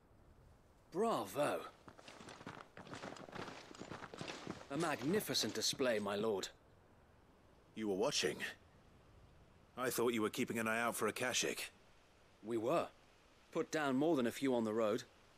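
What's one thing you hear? Another man speaks with enthusiasm, close up.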